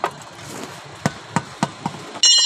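A metal tool clinks sharply against a steel wheel rim.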